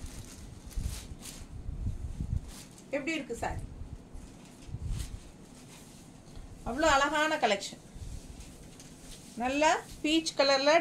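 Cloth rustles as fabric is handled.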